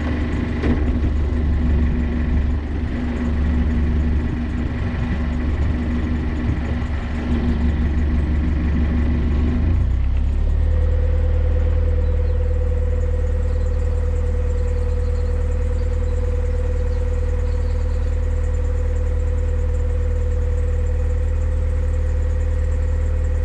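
A boat engine chugs steadily with a low, deep hum.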